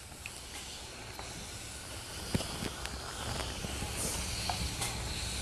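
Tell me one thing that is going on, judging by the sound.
An iron slides and scrapes softly over fabric on an ironing board.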